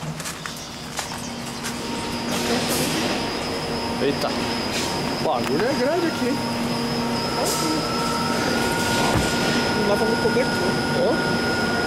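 Machines hum steadily in a large echoing hall.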